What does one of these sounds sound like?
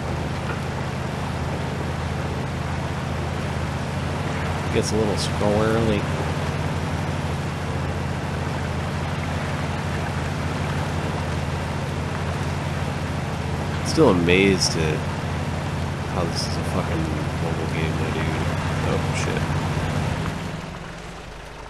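An engine hums steadily as an off-road vehicle drives.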